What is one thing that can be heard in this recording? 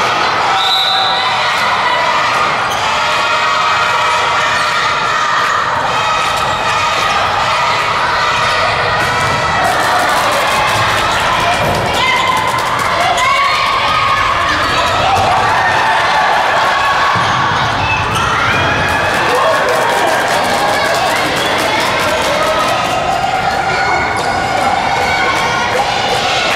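Spectators chatter and shout in a large echoing hall.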